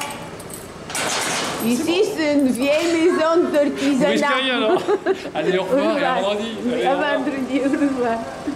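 A middle-aged man laughs loudly.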